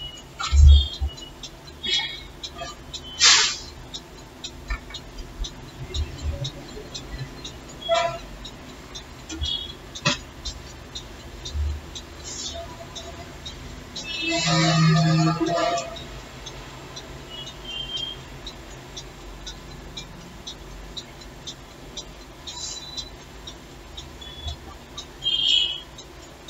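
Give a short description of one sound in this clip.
Fingertips tap lightly on a tablet's touchscreen.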